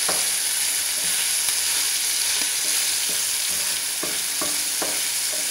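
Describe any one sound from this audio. Food sizzles and crackles in a hot frying pan.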